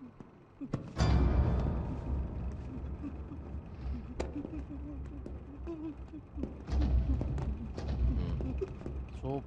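A scuffle thumps and bumps nearby.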